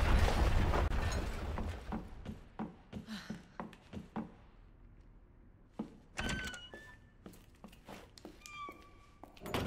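Footsteps walk along a floor.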